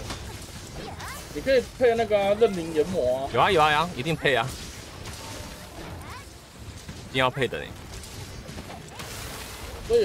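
Blades slash and strike with sharp hits.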